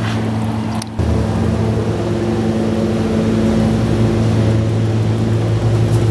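A car engine idles nearby with a low rumble.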